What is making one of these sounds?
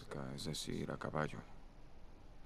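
A man speaks in a low, gravelly voice.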